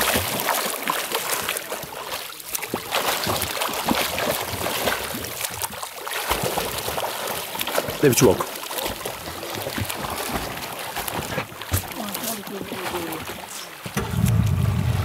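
Water splashes close by as a swimmer strokes through it.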